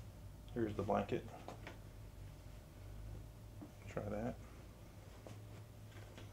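A soft towel rustles as it is handled.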